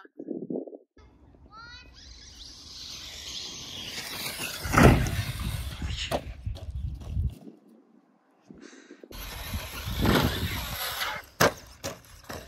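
A toy car's motor whines as it drives over grass.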